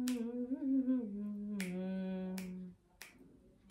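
A young woman hums a melody close by.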